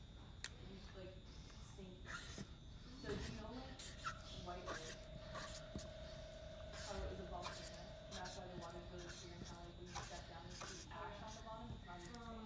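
A felt marker squeaks across paper.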